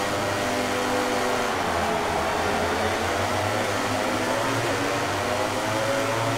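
A motorcycle engine roars as it accelerates and shifts up through the gears.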